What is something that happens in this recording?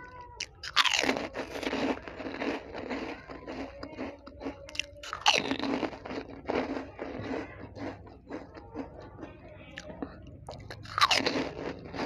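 A woman crunches crisp snacks loudly and close to a microphone.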